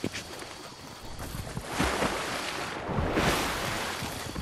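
Water splashes as a swimmer paddles through it.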